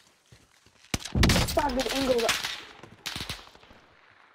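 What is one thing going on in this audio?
A rifle fires a loud shot that booms and echoes.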